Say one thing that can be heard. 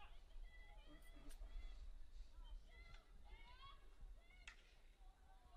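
Hockey sticks clack against a ball at a distance.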